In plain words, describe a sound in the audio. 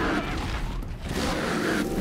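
Grass rustles as someone pushes through it.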